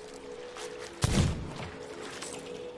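Cannons boom from a ship.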